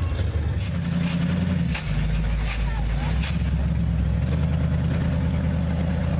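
A big truck engine idles with a deep, low rumble.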